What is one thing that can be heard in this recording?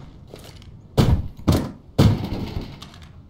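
A metal case clicks open.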